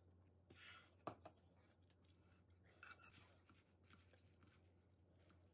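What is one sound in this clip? Chopsticks click against a ceramic bowl.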